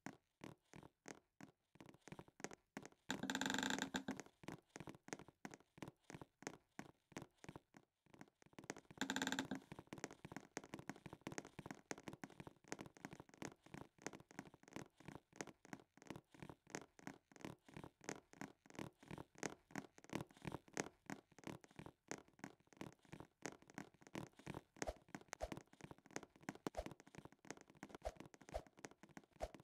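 Quick footsteps patter steadily on stone.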